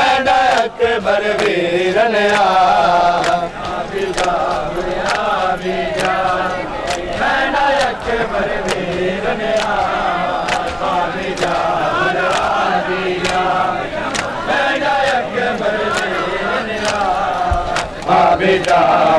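A crowd of men chants loudly in unison outdoors.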